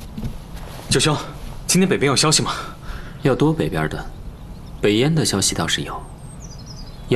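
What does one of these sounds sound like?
A young man asks questions with animation, close by.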